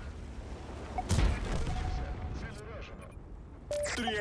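A shell explodes with a loud blast.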